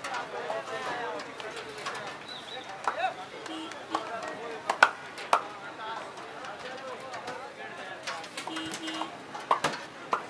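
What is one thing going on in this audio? Metal utensils clatter and scrape on a hot griddle.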